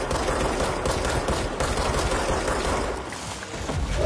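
A pistol fires.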